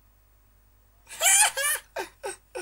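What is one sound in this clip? A teenage boy laughs loudly close to a microphone.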